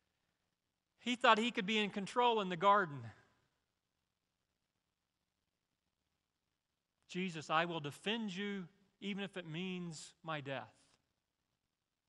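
A middle-aged man speaks through a microphone, pausing between phrases.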